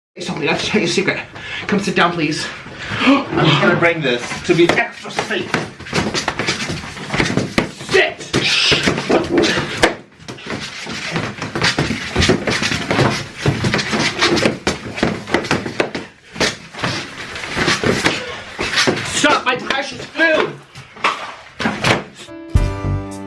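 A young man talks and laughs with animation close by.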